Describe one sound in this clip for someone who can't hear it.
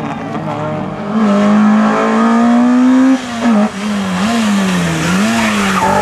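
A second rally car engine revs loudly close by.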